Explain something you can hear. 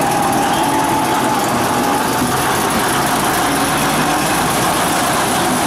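A diesel locomotive engine idles with a steady rumble close by.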